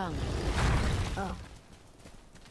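A heavy stone door grinds open.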